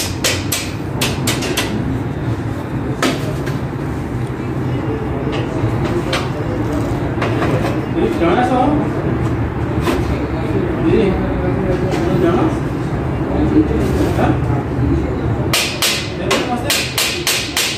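Metal ceiling fittings click and knock as a worker fixes them overhead.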